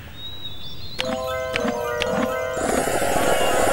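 A bright chiming jingle plays.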